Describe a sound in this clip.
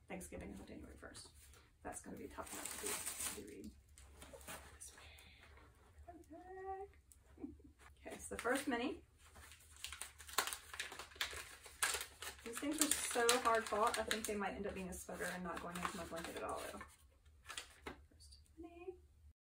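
Paper and plastic wrapping rustle and crinkle.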